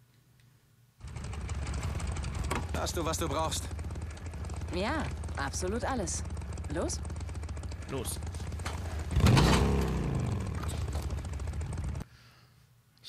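Motorcycle engines idle with a low steady rumble.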